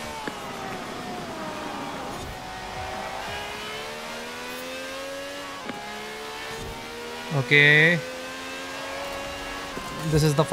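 A racing car engine roars and climbs in pitch through the gears.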